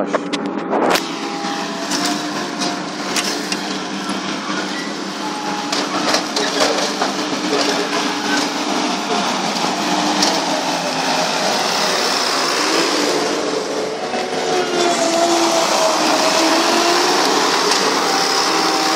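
A small loader's diesel engine runs and revs nearby.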